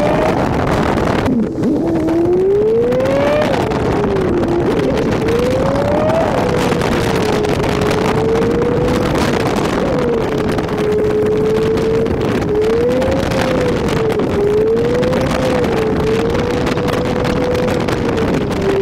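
Tyres roar on a paved road.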